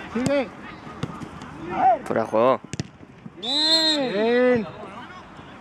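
Men shout to each other across an outdoor football pitch.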